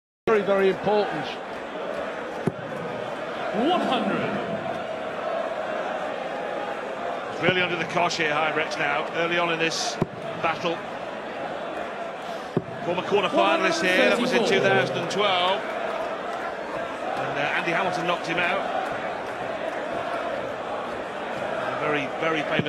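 A large crowd cheers and chants in a big echoing hall.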